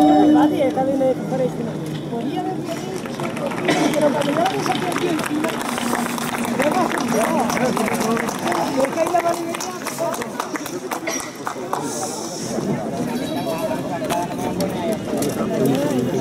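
A crowd of men and women murmur and chat nearby outdoors.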